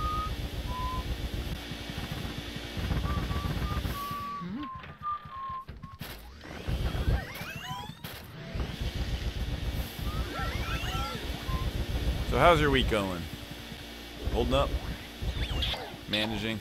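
Game music plays with light melodic notes.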